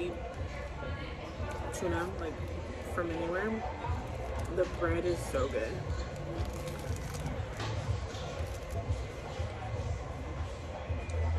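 A young woman chews food close by.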